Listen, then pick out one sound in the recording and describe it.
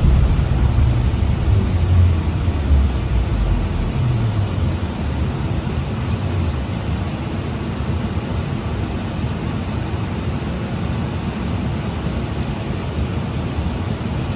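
A bus rattles and hums as it rolls along the road.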